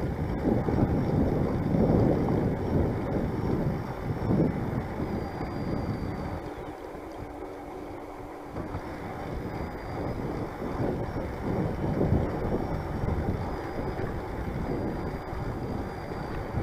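Tyres hum on a paved path.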